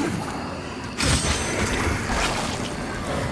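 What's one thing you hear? A crackling magic blast bursts loudly.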